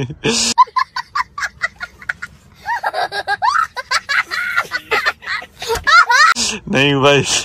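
A young boy laughs loudly and shrieks.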